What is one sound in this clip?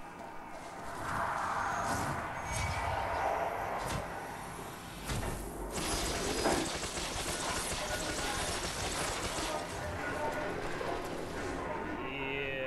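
Magical blasts crackle and whoosh.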